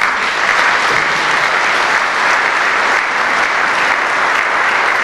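An accordion ensemble plays loudly in a reverberant hall.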